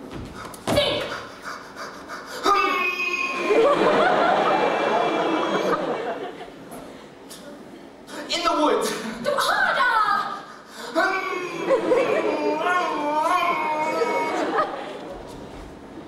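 A young woman sings on a stage.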